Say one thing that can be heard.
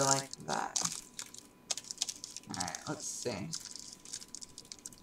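Stiff paper crinkles and rustles as it is folded.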